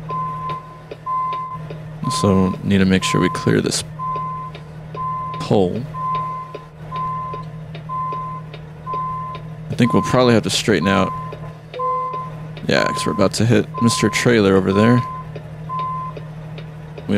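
A reversing alarm beeps at a steady pace.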